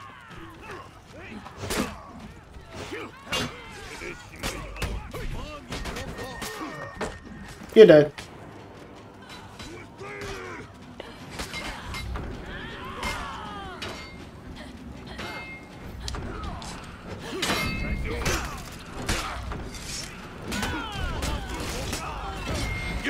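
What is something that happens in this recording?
Swords clash and strike repeatedly in a game fight.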